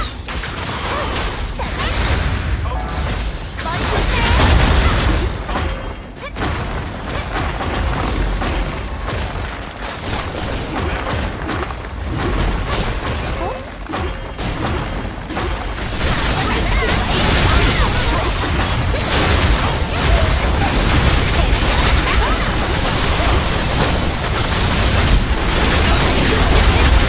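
Game explosions and magic blasts boom and crackle.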